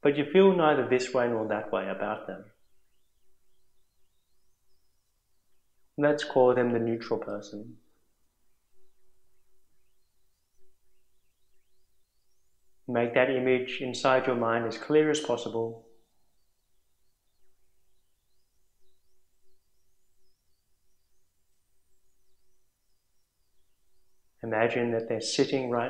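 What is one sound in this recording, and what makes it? A man speaks calmly and slowly in short phrases with long pauses.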